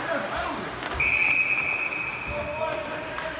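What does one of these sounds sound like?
A referee blows a long, shrill whistle.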